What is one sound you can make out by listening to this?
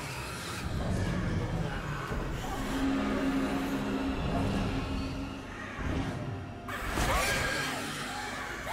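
Footsteps thud on a wooden floor.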